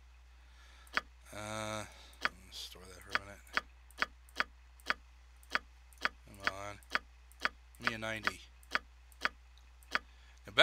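Short sharp clicks repeat at a quick, steady pace.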